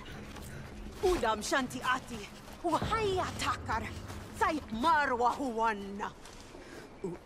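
A young woman speaks calmly and firmly, close by.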